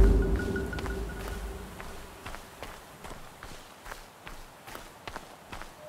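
Footsteps crunch slowly on a leafy forest floor.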